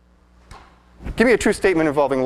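A man speaks loudly and with animation into a microphone in a large echoing room.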